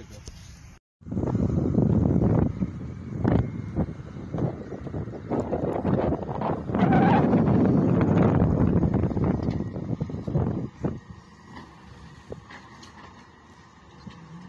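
Wind gusts roughly against the microphone outdoors.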